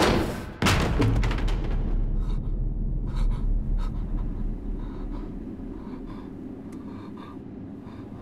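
A young man breathes heavily, close by.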